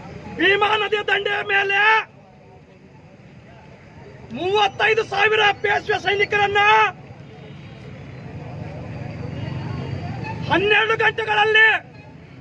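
A man close by shouts slogans in loud rhythmic bursts.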